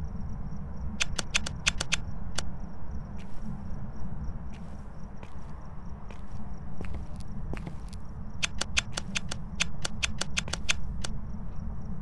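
Footsteps tread slowly on a wooden floor.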